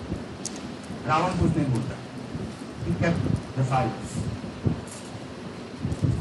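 A man speaks to an audience in a room with some echo, heard through a microphone.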